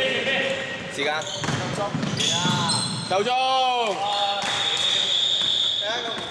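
Sneakers squeak sharply on a hard court floor in a large echoing hall.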